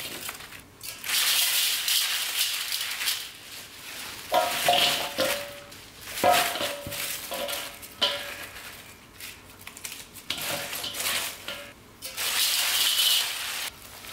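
Salt patters softly onto leaves.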